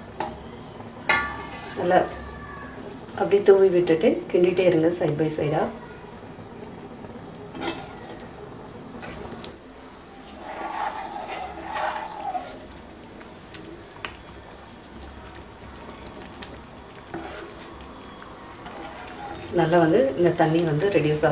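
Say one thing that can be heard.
A ladle stirs through thin porridge in a pan.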